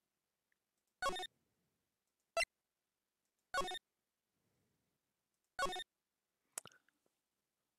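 Short game menu blips sound as options are picked.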